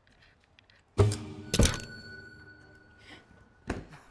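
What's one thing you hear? A guitar is strummed loudly and rings out.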